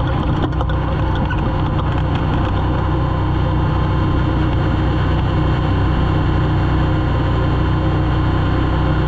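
A racing engine roars loudly and steadily from inside the car.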